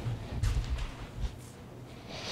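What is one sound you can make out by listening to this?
A clip-on microphone rustles and thumps close up.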